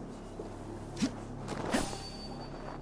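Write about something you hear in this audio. A body lands with a heavy thud in snow.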